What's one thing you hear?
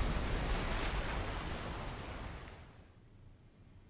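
A loud explosion roars and rumbles over water, then fades.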